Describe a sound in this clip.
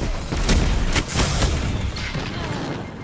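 An energy explosion roars loudly.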